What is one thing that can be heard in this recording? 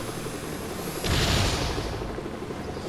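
An energy blast bursts with a short rushing whoosh.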